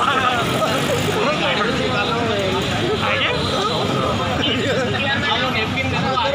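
Several men argue loudly in a crowd outdoors.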